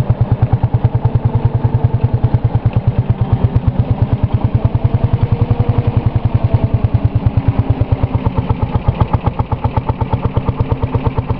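A tractor engine chugs loudly and steadily close by.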